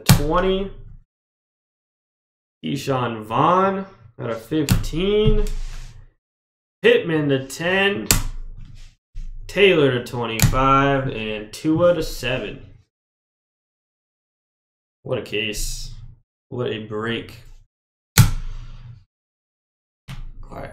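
Hard plastic card cases clack softly against each other.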